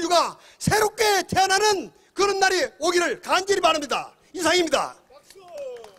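A middle-aged man sings loudly through a microphone and loudspeakers outdoors.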